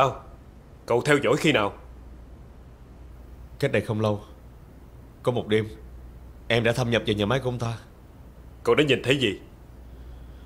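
A middle-aged man speaks firmly nearby.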